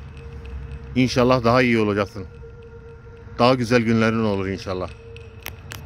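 A man speaks slowly in a low, eerie voice.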